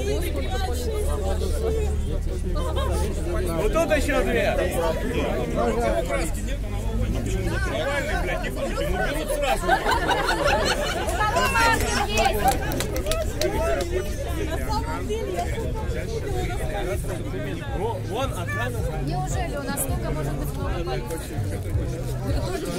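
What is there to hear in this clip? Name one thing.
A crowd of men and women talks loudly outdoors.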